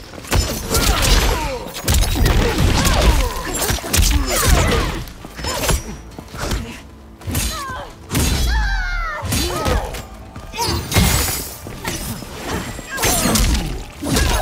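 Magic blasts whoosh and crackle.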